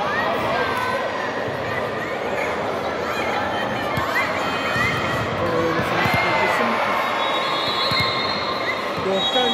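Young women chatter and call out in a large echoing hall.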